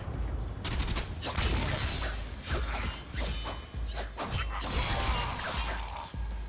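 A blade swishes and strikes metal armour.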